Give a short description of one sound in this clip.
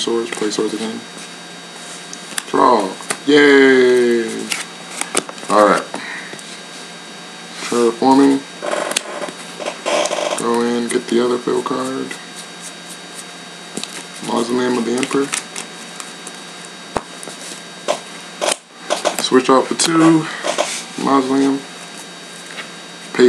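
Playing cards slide and tap softly on a cloth mat.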